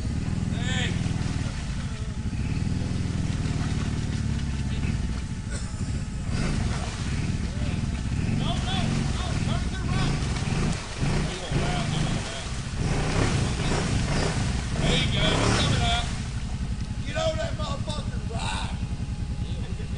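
An engine revs and rumbles loudly.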